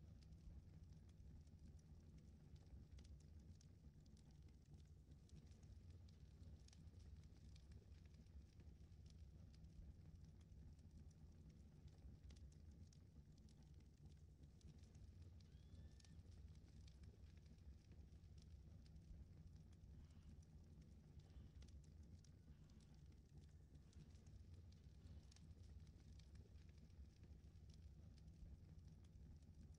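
A low electrical hum drones steadily.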